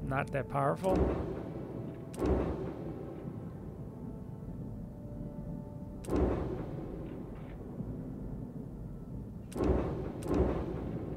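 A soft whoosh sounds each time a game menu selection changes.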